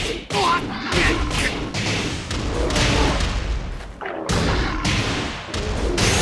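Fiery magic blasts burst with a crackle.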